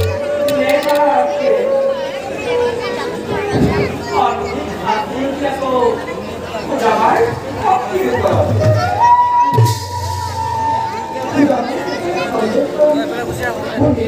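A hand drum beats along.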